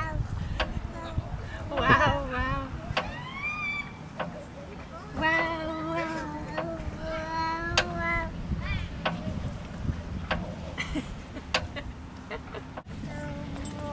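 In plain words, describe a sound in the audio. A young woman talks in a high, playful voice close by.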